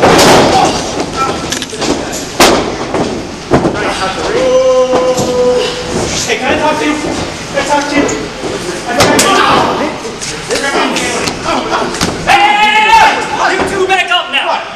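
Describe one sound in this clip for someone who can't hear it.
Bodies slam onto a mat with loud thuds.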